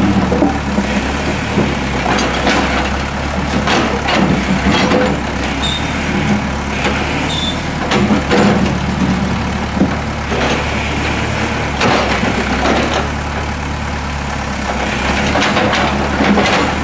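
A backhoe bucket scrapes and clanks against dirt and rubble.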